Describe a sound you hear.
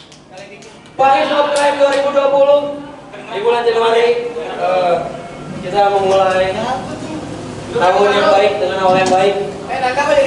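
A man shouts and sings loudly into a microphone over loudspeakers.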